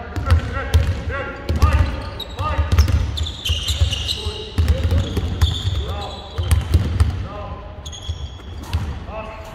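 Basketballs bounce repeatedly on a wooden floor in a large echoing hall.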